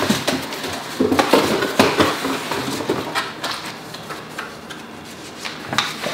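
Paper crinkles as a sheet is unfolded.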